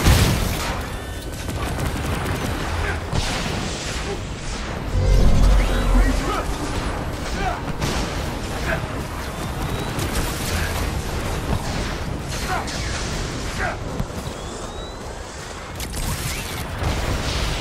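Energy blasts fire in rapid bursts.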